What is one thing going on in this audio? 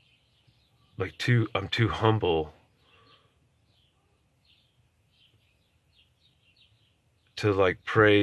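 A man talks close by, in short bursts with pauses.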